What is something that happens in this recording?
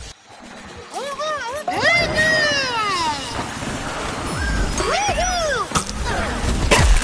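Cartoonish laser blasts zap and whoop in rapid bursts.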